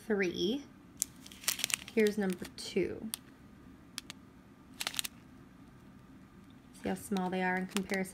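Plastic bags crinkle and rustle as they are handled close by.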